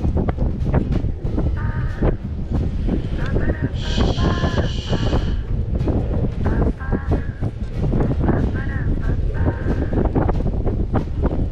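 Strong wind blows and buffets outdoors.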